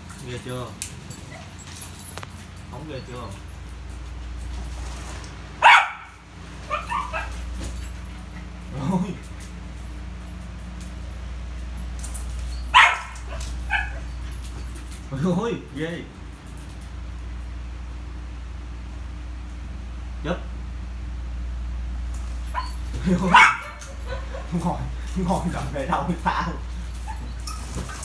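A small dog's paws patter on a mat.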